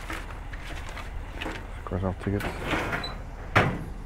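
Papers rustle as a hand rummages through them.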